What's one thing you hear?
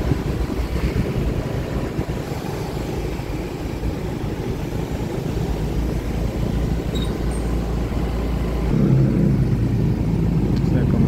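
Wind rumbles past while riding outdoors.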